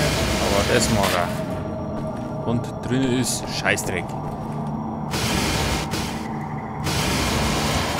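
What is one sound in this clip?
A laser cutter hisses and crackles as it burns through metal.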